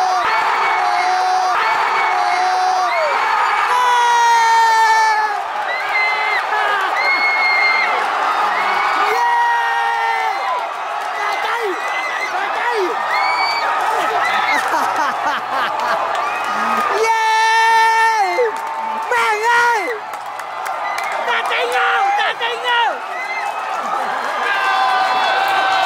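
A large crowd of fans chants and sings loudly in a stadium.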